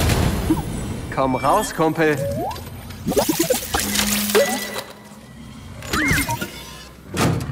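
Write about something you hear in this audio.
A small robot chirps and beeps.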